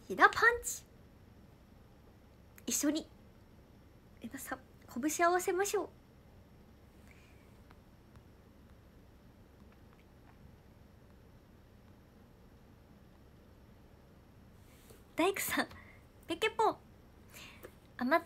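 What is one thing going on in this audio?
A young woman speaks animatedly and close to the microphone, in short bursts with pauses.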